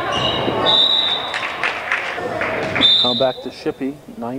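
A referee's whistle blows sharply in an echoing gym.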